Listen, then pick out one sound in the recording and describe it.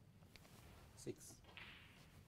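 A snooker ball is set down on the table with a soft click.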